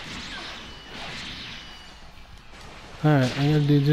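An energy blast whooshes and crackles.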